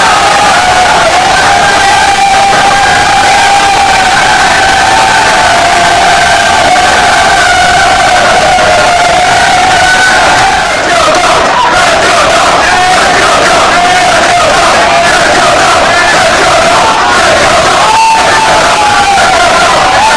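A crowd of young men chant and sing loudly together in a small echoing room.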